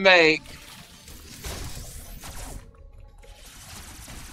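Laser blasts and explosions ring out from a video game.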